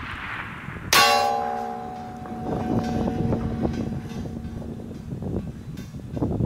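A steel target rings after being hit and slowly fades.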